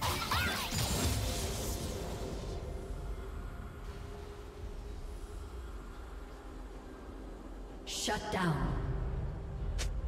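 Video game fighting effects whoosh and crackle.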